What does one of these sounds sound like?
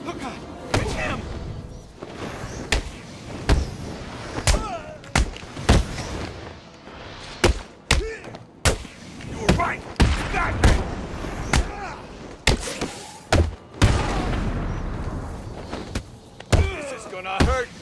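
Punches and kicks land with heavy thuds in a fistfight.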